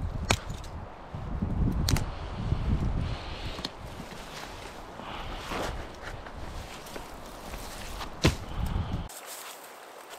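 Footsteps crunch through brush and dry needles.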